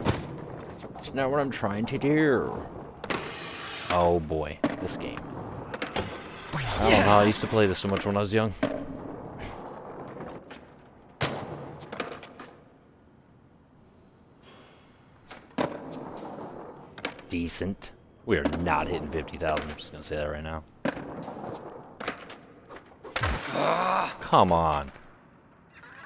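Skateboard wheels clack as the board lands.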